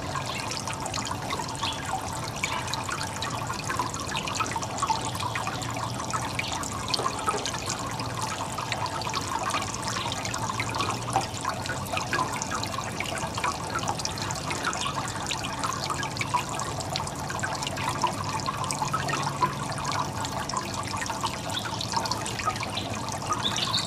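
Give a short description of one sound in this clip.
Water trickles and splashes steadily into a basin.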